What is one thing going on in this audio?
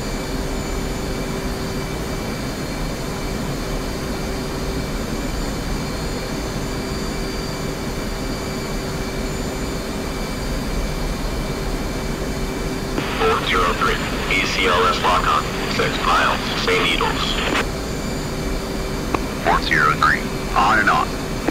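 A low, steady engine drone hums inside an aircraft cockpit.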